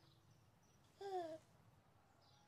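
A baby coos briefly.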